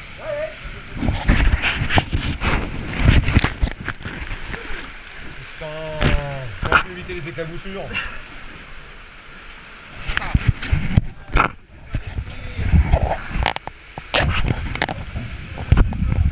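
Water splashes and sloshes as people wade through it.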